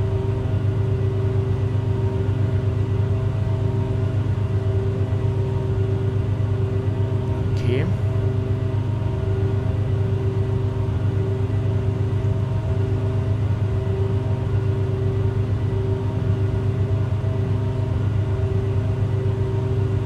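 Aircraft engines drone steadily in the cockpit.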